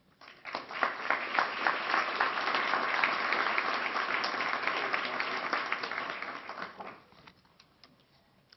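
A large audience applauds, then the clapping dies away.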